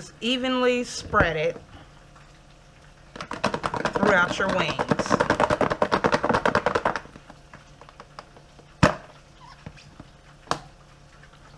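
Plastic lids snap and click onto food containers.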